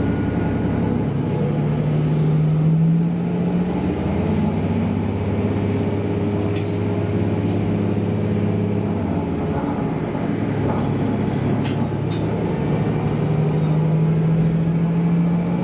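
Train wheels rumble and click over the rails.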